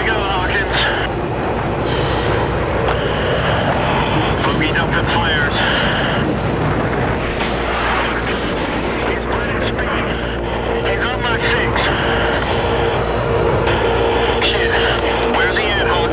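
A jet engine roars steadily throughout.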